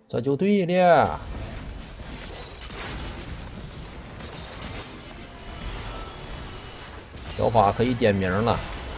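Game battle effects clash and crackle.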